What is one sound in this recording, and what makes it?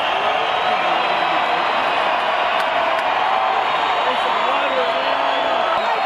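Loud live music plays through big speakers in a large echoing arena.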